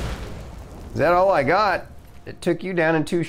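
A man speaks with animation into a microphone, his voice rising and falling.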